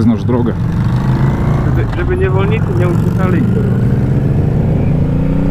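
A motorcycle engine revs up as the bike pulls away.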